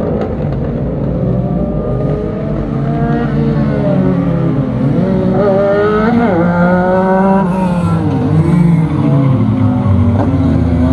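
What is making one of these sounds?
Several race car engines roar and rev as the cars approach and pass close by.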